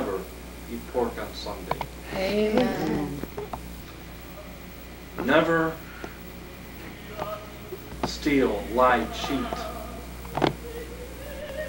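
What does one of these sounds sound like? A man speaks in a theatrical, sing-song voice close by, with pauses between phrases.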